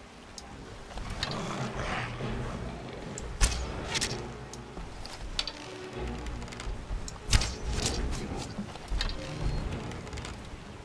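A bow creaks as its string is drawn back.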